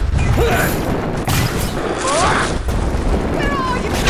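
Flames whoosh and roar.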